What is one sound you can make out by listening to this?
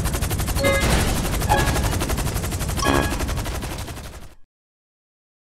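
A heavy explosion rumbles and roars, then cuts off abruptly.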